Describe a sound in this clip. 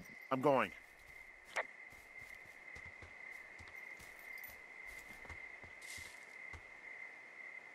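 Footsteps thud softly on forest ground.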